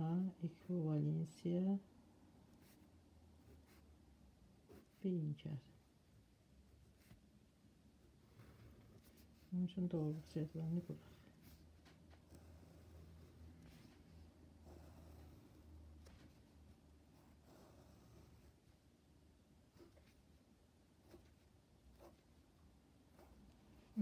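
A pen scratches across paper, drawing lines.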